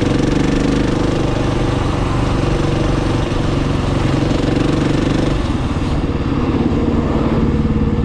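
A car passes close by.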